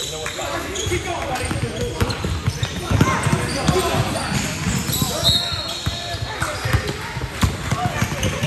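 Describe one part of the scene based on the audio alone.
A basketball bounces repeatedly on a wooden court in a large echoing gym.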